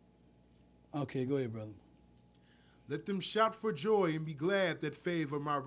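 A man reads aloud calmly into a microphone.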